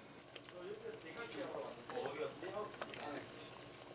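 A ladle scoops and splashes soup in a pot.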